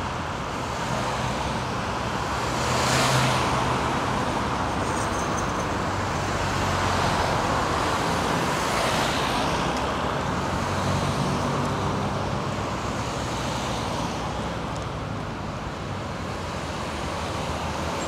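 Cars drive past on a wide road, their tyres hissing on the asphalt.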